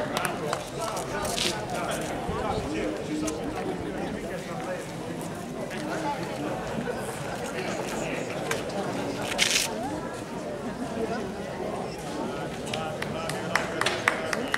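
A crowd of people murmurs and chats outdoors.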